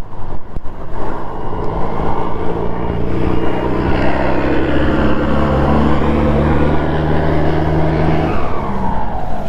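Other motorcycle engines rumble close by.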